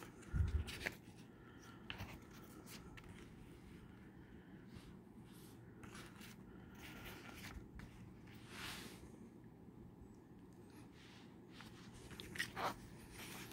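Paper pages rustle as a booklet's pages are turned.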